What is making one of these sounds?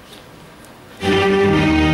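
A keyboard starts playing loudly.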